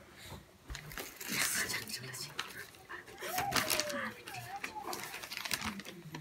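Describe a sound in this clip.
Sheets of paper rustle and flap.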